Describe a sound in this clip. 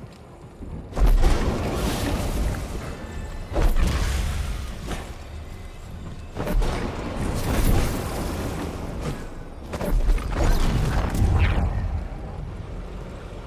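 A rushing whoosh of air swells in loud bursts.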